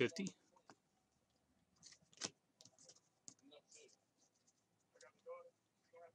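A foil card pack crinkles as hands tear it open.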